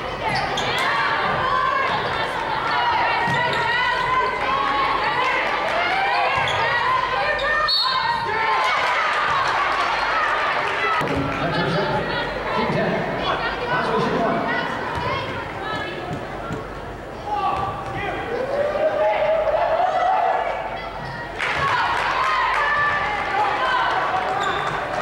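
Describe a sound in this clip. Basketball players' sneakers squeak on a hardwood court.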